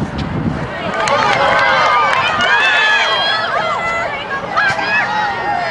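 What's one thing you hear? Spectators cheer and shout loudly as a shot nears the goal.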